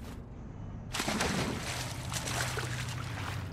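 Water splashes loudly as a character drops into a pool.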